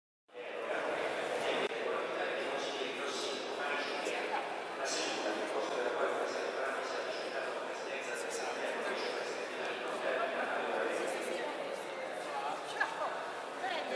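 A crowd chatters loudly in an echoing hall.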